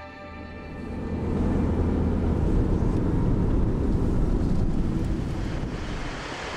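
A car's engine and tyres rumble low on the road.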